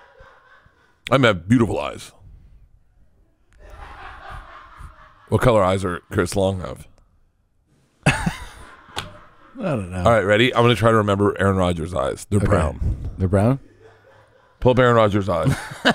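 A second man answers into a close microphone.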